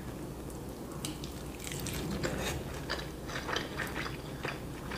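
Crispy food crunches as a young woman bites and chews it close to a microphone.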